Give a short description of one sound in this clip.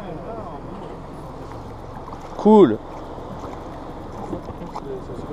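Water laps gently against the side of a small boat.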